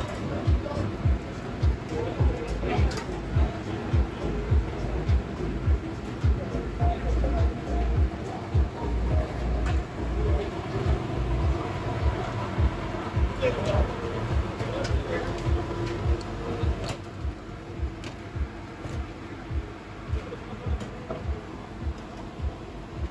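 Meat sizzles and hisses on a hot grill.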